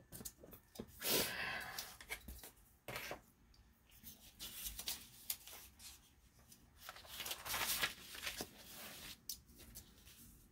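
Sheets of paper rustle and slide as they are moved around.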